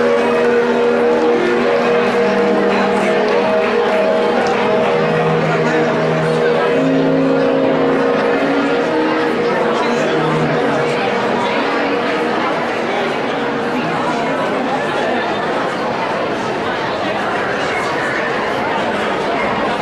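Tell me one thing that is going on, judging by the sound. An audience murmurs and chatters in a large hall.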